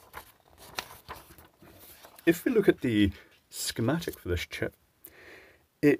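A sheet of paper rustles as hands handle it and lay it flat.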